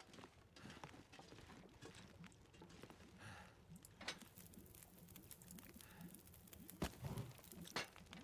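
A fire crackles in a stove.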